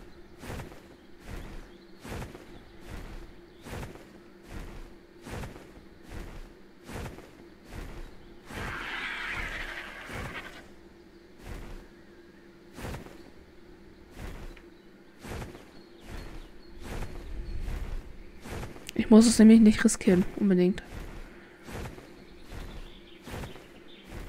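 Large wings flap in a steady, regular beat.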